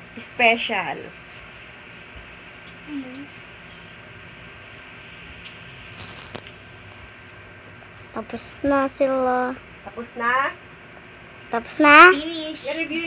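Young girls sing and talk in high voices nearby.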